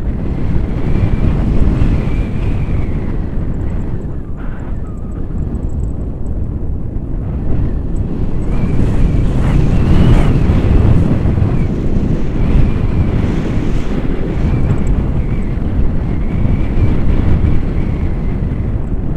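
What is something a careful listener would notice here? Strong wind rushes and buffets against a microphone, heard outdoors.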